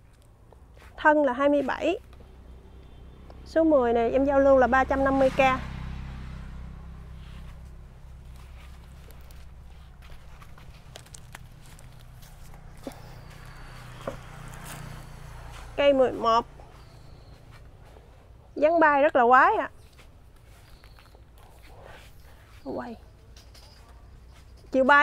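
A young woman speaks calmly and close by, in short bursts.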